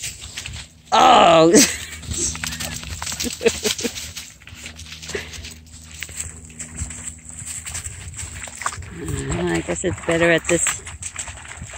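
A dog yelps and whines close by.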